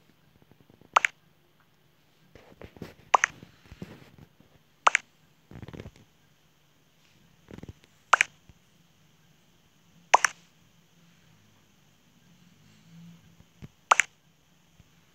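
A short electronic chime sounds each time a new chat message pops up.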